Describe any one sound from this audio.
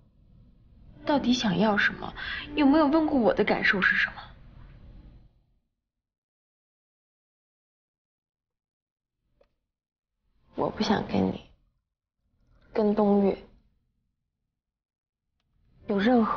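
A young woman speaks close by in an upset, pleading voice.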